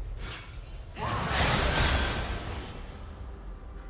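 Magic spells whoosh and crackle during a fight in a game.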